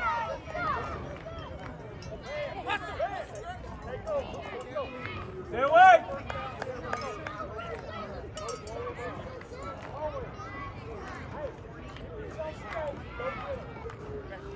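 Young players shout to each other on the field.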